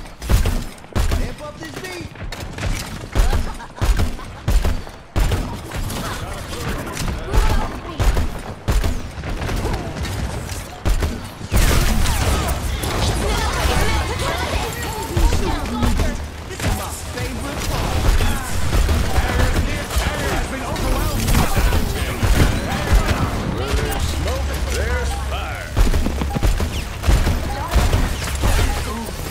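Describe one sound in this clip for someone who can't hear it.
A gun fires bursts of shots.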